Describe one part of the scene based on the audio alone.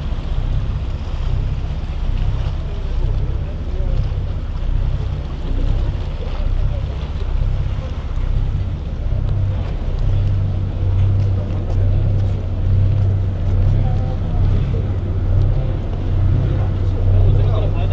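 A boat engine rumbles low and steady.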